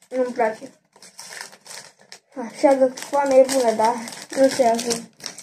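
A candy wrapper crinkles as a boy opens it.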